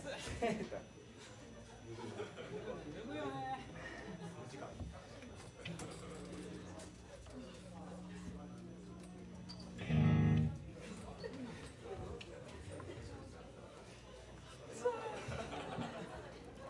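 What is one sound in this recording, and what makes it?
A band plays loosely in a room.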